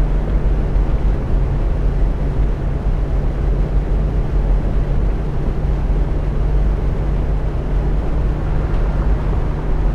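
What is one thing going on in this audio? A bus engine hums steadily at a low pitch.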